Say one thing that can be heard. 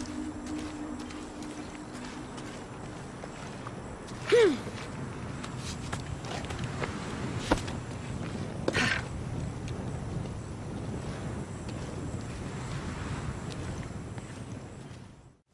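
Footsteps crunch slowly over rocky ground.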